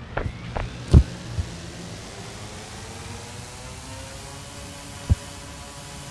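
A small drone's propellers whir and rise in pitch.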